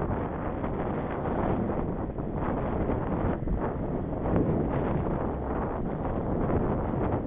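Wind buffets the microphone loudly outdoors while riding.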